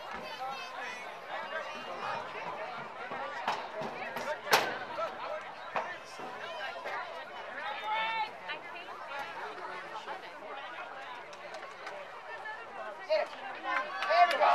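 A crowd of young girls chatters and cheers outdoors nearby.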